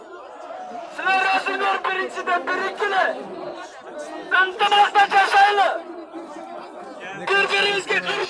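A man speaks loudly and with animation close by.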